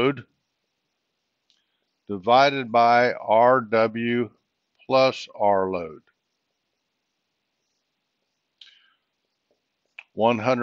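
An older man speaks calmly through a close microphone, lecturing in short phrases.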